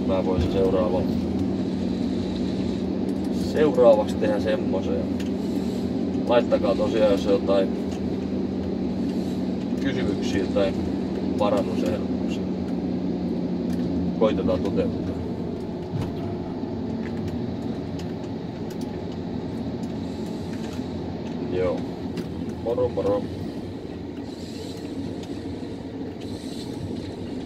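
A forestry harvester's diesel engine runs, heard from inside the cab.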